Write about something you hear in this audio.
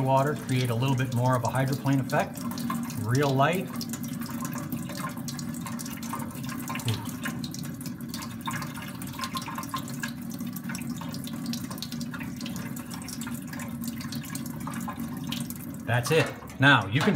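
Water runs steadily from a tap into a metal sink.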